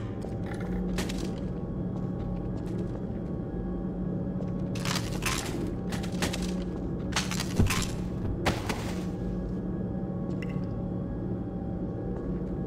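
Footsteps scuff and clank on concrete and metal.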